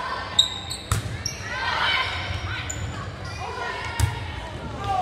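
A volleyball is struck in an echoing gym.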